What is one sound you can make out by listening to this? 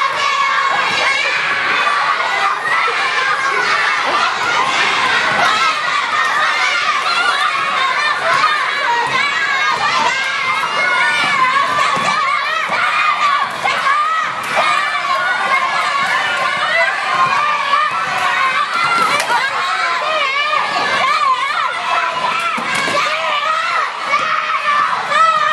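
Many children chatter and shout in a large echoing hall.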